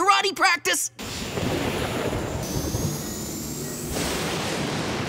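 Rocket jets roar steadily.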